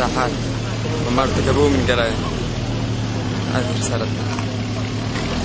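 A young man speaks with emotion close by.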